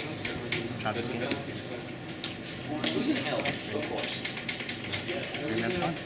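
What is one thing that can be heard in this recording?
Playing cards tap softly onto a table.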